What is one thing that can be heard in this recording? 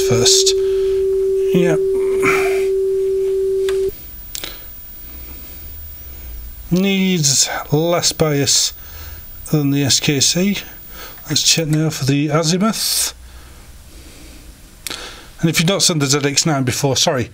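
Buttons click on a cassette deck.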